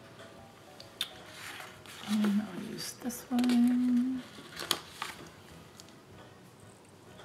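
Paper sheets rustle and crinkle as they are handled.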